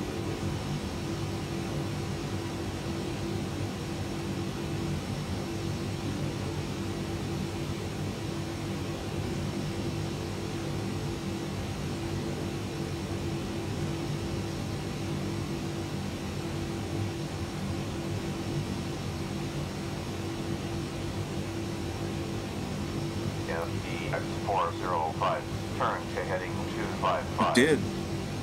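Jet engines hum with a steady low drone.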